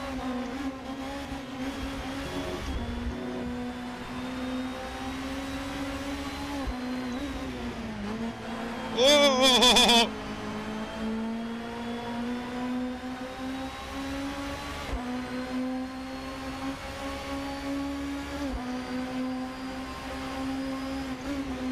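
A touring car engine revs hard, accelerating through the gears.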